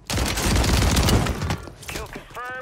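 An automatic shotgun fires in rapid bursts.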